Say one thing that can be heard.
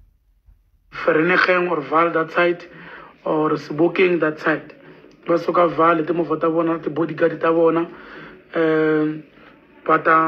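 A man speaks calmly into a phone microphone, close by.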